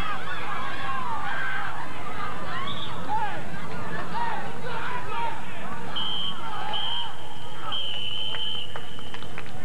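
A crowd of spectators chatters and calls out at a distance outdoors.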